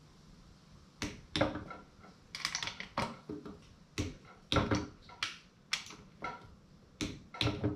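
A socket wrench ratchets as bolts are turned.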